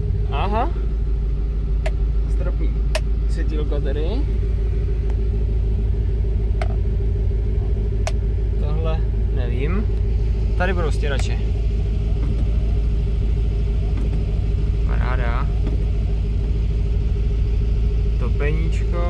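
A car engine idles with a steady, low rumble.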